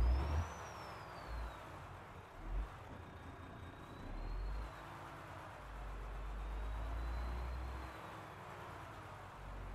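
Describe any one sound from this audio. A truck engine idles with a low, uneven rumble.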